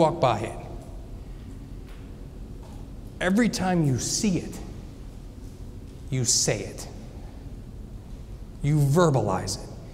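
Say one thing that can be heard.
A middle-aged man speaks calmly through a microphone, with pauses.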